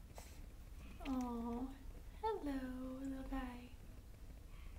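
A puppy whines softly nearby.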